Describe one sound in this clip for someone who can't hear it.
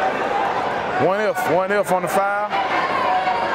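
A man in the crowd shouts loudly.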